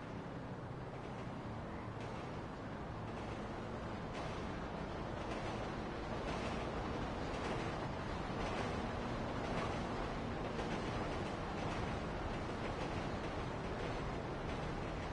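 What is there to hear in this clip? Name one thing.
Footsteps tap on pavement at a walking pace.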